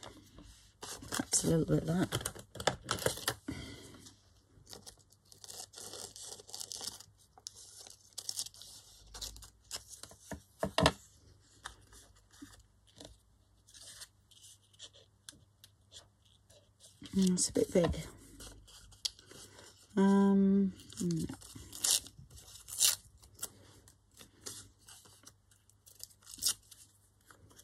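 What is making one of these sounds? Paper crinkles and rustles in hands.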